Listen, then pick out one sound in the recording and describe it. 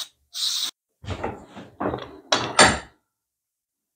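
A metal tool clicks and scrapes against metal.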